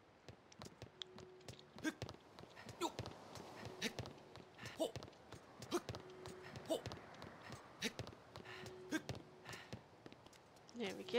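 Hands and feet clack on a wooden ladder while climbing.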